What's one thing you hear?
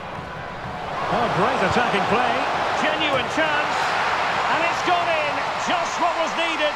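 A stadium crowd roars with rising excitement.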